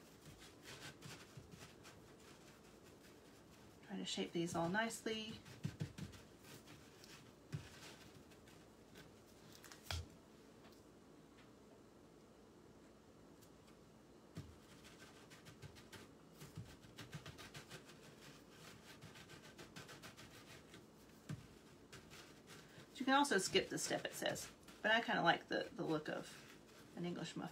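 Dough is pressed and patted by hand on a metal tray.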